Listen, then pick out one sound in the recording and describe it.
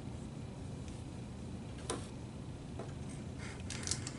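A tool is set down on a wooden table with a knock.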